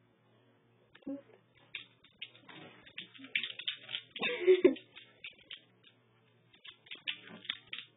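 A dog scrabbles and plays on a hard floor.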